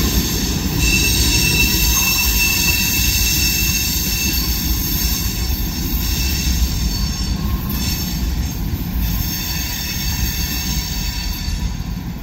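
A freight train rumbles and clatters past on the rails.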